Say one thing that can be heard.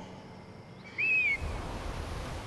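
An eagle screeches sharply.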